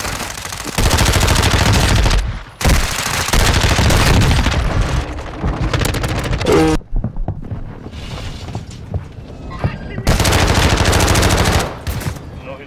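Automatic gunfire rattles in loud, rapid bursts.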